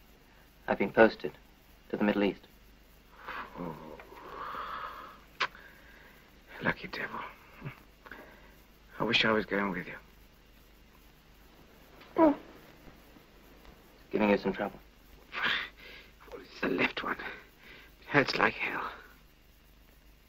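A young man speaks quietly and earnestly, close by.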